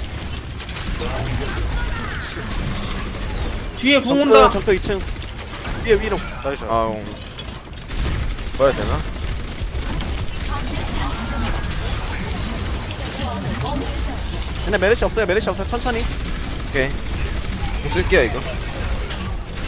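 A game weapon fires in rapid bursts.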